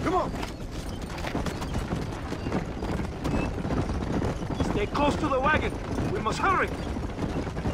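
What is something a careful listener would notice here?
Horse hooves gallop over dirt at a steady fast pace.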